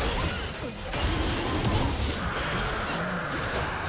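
A dragon roars as it is slain.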